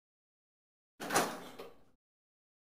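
A heavy metal door creaks slowly open.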